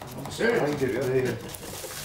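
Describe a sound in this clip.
A knife chops a leek on a wooden board.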